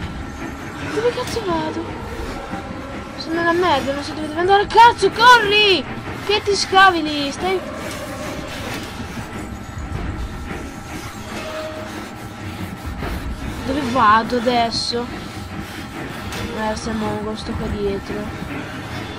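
A young boy talks with animation, close to a microphone.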